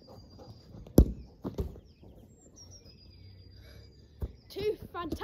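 A football is kicked with sharp thumps outdoors.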